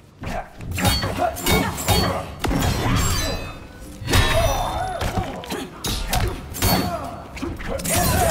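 Heavy punches and kicks thud and smack in a fast fight.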